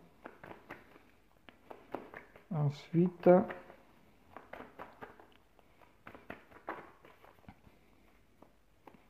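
Cards are shuffled with soft, quick flicks.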